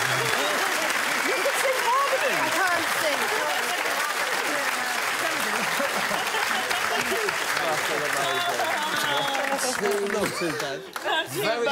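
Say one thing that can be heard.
An audience laughs loudly and steadily.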